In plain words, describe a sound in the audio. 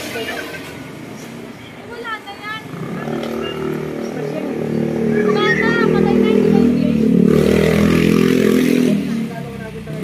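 A woman talks with a man nearby.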